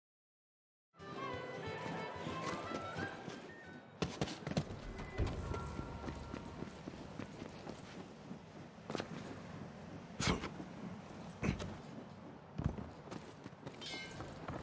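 Footsteps thud on stone and wooden boards.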